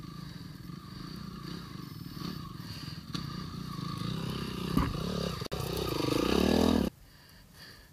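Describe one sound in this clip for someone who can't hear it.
A dirt bike engine revs and grows louder as it climbs closer.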